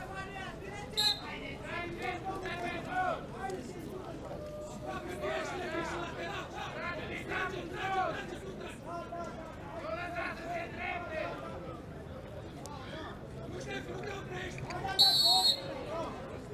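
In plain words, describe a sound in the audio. A referee's whistle blows short, sharp blasts.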